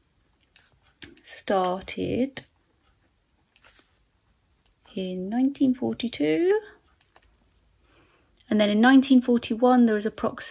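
A young woman talks calmly and close to a microphone, with pauses.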